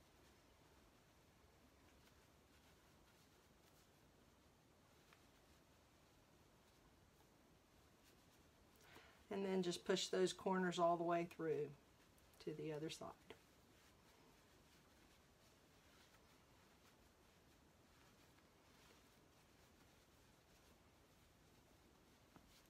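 Fabric rustles softly as hands fold and squeeze it.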